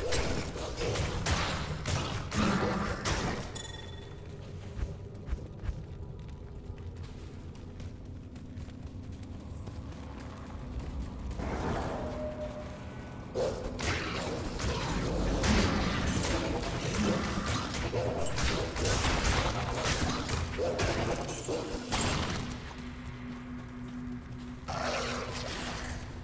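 Game combat sounds of blows and spells clash repeatedly.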